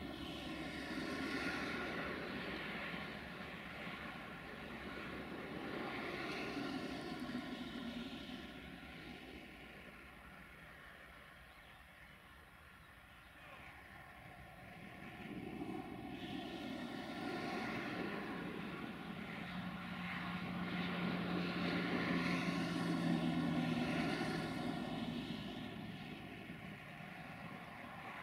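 A freight train rumbles away along the tracks, its wagons clattering over the rails.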